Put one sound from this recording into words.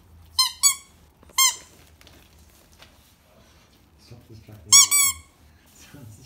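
A rubber toy ball squeaks sharply several times.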